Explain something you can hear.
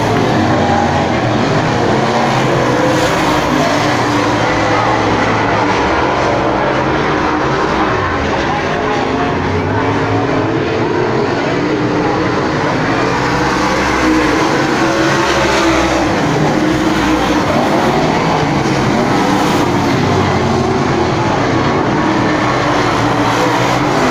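Modified dirt-track race cars roar around a dirt oval, engines rising and falling.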